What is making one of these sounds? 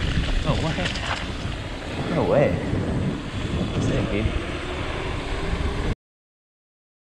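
Bicycle tyres roll smoothly over pavement.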